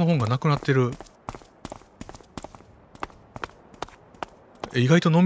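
Footsteps tap lightly on a paved walkway.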